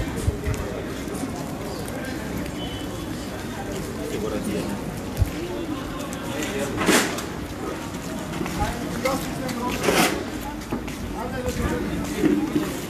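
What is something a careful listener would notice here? A crowd of men murmurs in prayer outdoors.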